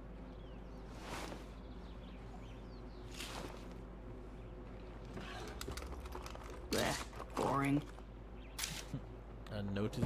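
Drawers and boxes rattle as they are searched.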